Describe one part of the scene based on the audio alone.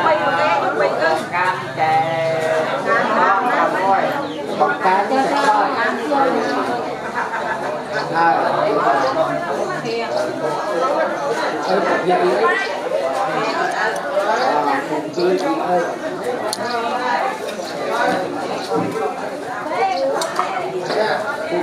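Several adult men and women talk together nearby, overlapping one another.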